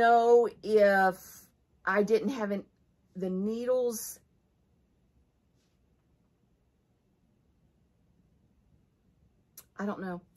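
A middle-aged woman speaks calmly and close to a microphone, with pauses.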